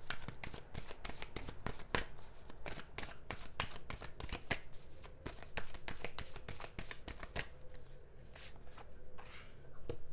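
Playing cards are shuffled by hand, with quick, crisp flicks and taps.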